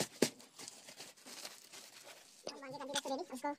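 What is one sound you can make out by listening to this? A plastic sack rustles and crinkles as it is handled.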